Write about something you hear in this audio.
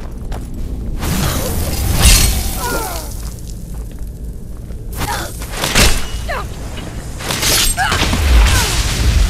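A magic spell crackles and roars.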